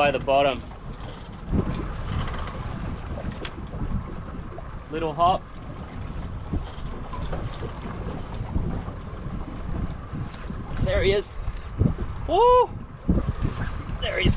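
A fishing reel clicks and whirs as line is wound.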